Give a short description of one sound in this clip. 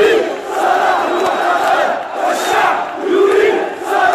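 A young woman chants loudly into a microphone.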